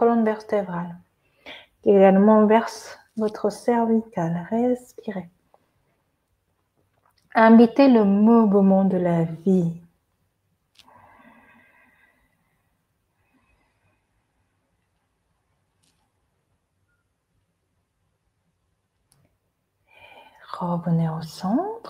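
A woman speaks calmly and slowly, close to a microphone, with long pauses.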